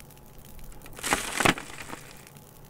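Sand pours onto burning coals with a soft rushing hiss.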